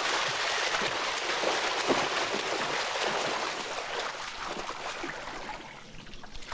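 Swimmers splash through water with quick strokes.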